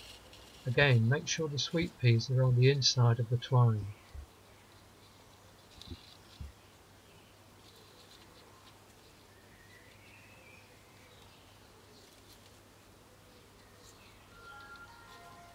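Leaves rustle softly close by.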